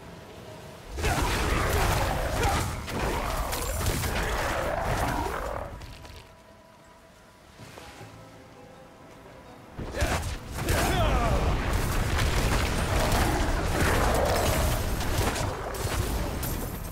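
Fiery spell blasts roar and crackle loudly.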